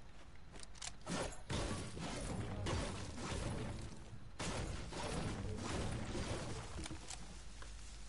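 A pickaxe strikes rock and wood with repeated thuds.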